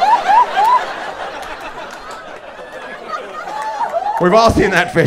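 An audience laughs in a large room.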